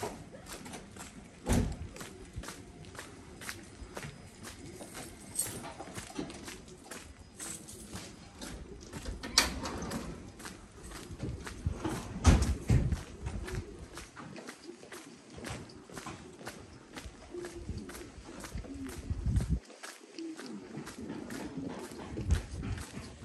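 Footsteps walk steadily along a paved street outdoors.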